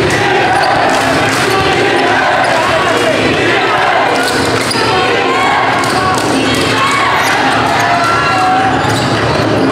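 A large crowd chatters and cheers in an echoing gym.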